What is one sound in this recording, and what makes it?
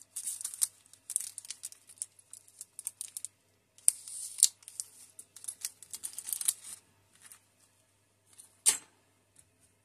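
Fingers rub and tap against a small plastic model, making crackly handling noises up close.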